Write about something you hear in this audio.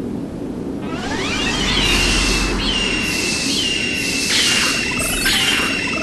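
A whooshing magic blast rises and bursts.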